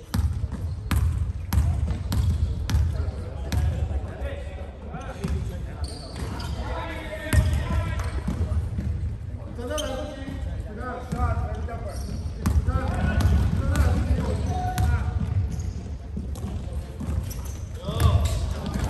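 Young men call out and chatter across the gym.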